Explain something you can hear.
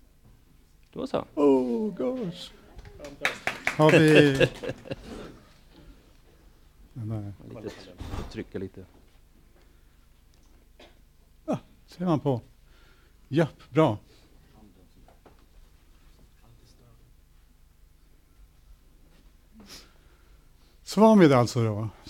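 An elderly man speaks through a microphone in short bursts with pauses.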